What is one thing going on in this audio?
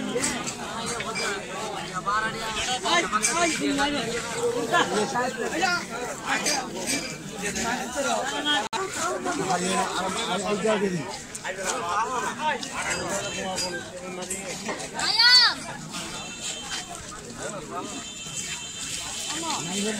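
Men talk nearby outdoors, with a busy murmur of voices around.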